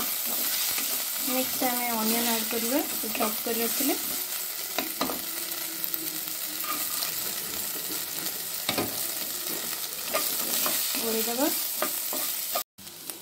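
A spatula scrapes and knocks against a metal pan.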